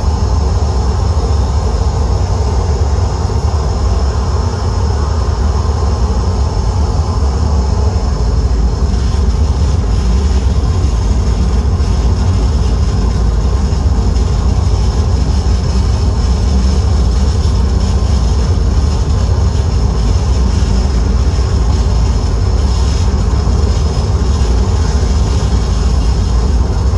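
Loud electronic music with a deep, droning bass plays steadily through amplifiers.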